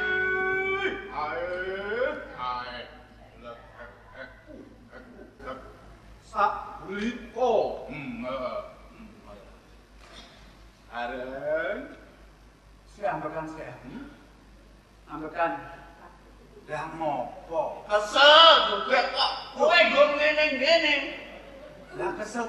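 A second man answers with animation, heard through a loudspeaker in a large hall.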